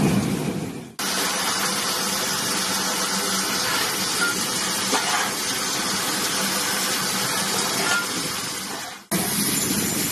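A locomotive's firebox roars steadily.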